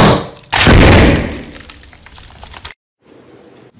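Hands squeeze a crinkly plastic bag.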